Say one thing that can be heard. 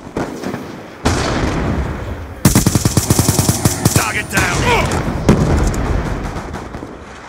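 Automatic rifle gunfire rattles in a video game.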